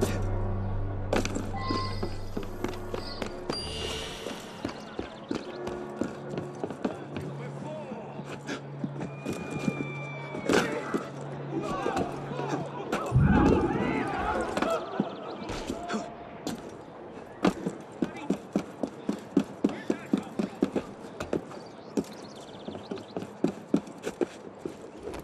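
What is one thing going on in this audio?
Quick footsteps patter over roof tiles.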